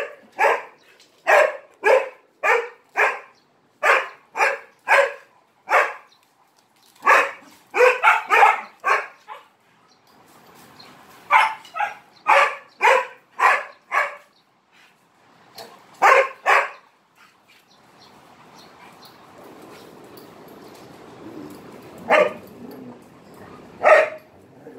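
A dog barks repeatedly nearby.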